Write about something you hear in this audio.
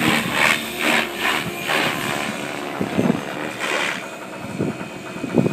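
A small model airplane's engine buzzes overhead, rising and falling.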